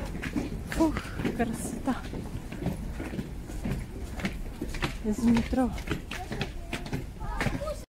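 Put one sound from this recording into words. Footsteps climb stone stairs outdoors.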